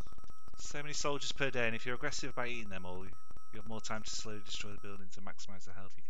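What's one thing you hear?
Beeping electronic game music plays a short tune.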